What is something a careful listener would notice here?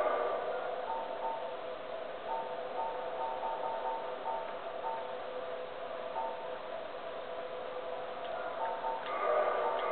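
Short electronic blips sound as a game menu cursor moves.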